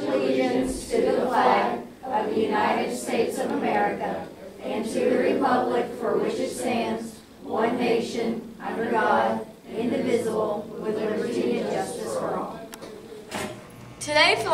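A young woman speaks to a group.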